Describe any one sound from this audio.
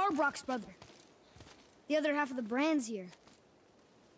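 A young girl speaks.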